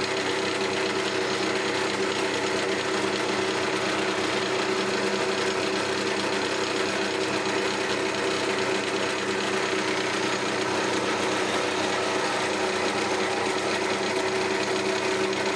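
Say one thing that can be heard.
A skew chisel shaves a spinning ash spindle on a wood lathe.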